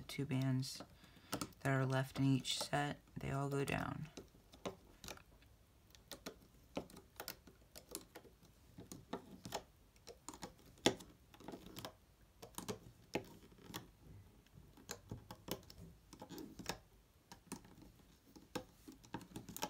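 Small plastic clicks and soft snaps come from a hook working rubber bands on a loom.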